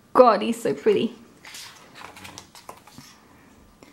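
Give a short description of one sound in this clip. A page of a glossy booklet is turned with a soft paper rustle.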